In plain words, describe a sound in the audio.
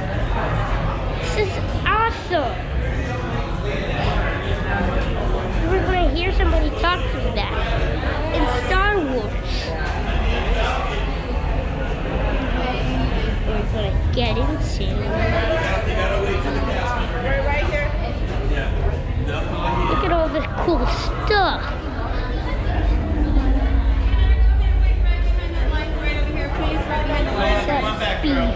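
A crowd chatters and talks in an echoing indoor hall.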